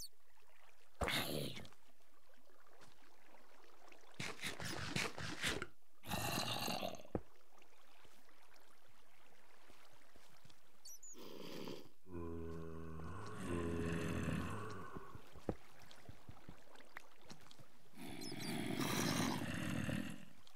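A zombie groans in a low, rough voice.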